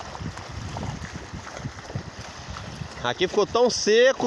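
Water splashes as a man pushes a small boat through the shallows.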